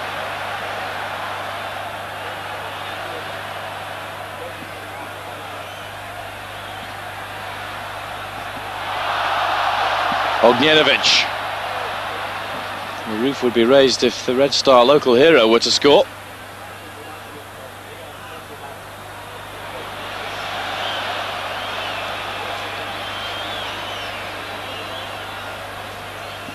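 A large stadium crowd roars and cheers in the distance.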